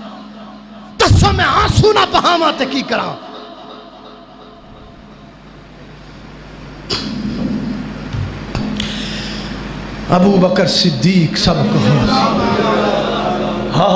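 A man preaches forcefully into a microphone, his voice echoing through a loudspeaker.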